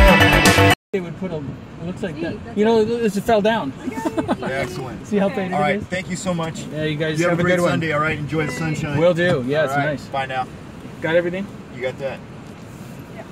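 Another middle-aged man talks back nearby.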